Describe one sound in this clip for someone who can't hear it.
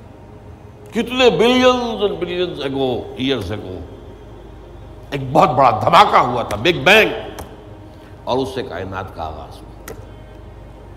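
An elderly man speaks calmly and earnestly into a microphone.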